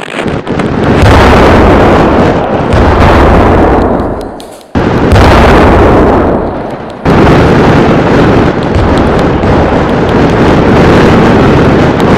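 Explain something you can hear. Loud roaring explosions rumble and crackle as a planet is blasted apart.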